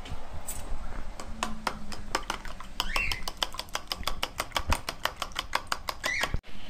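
A fork beats eggs in a bowl, clinking rapidly against its side.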